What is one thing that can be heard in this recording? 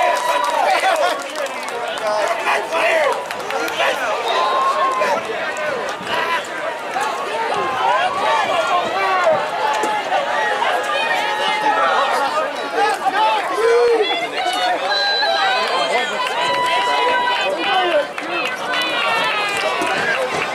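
A crowd of young players and spectators cheer and shout outdoors.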